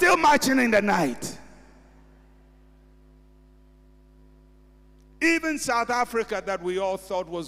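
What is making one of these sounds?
A man preaches forcefully into a microphone, with a large room's echo.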